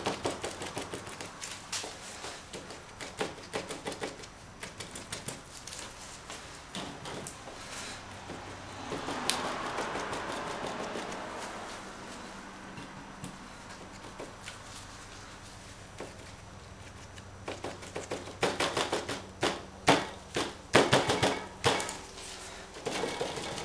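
Crumpled plastic dabs and crinkles against a board in quick taps.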